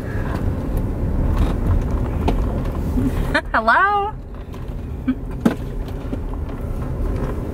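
A car engine and tyres rumble steadily on the road.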